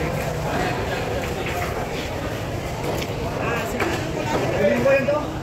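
A knife slices through a large fish.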